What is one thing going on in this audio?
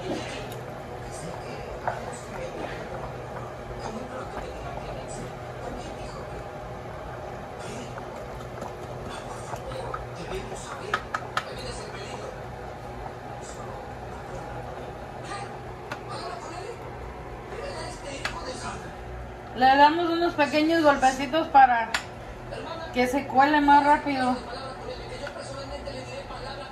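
A metal strainer clinks against a pot.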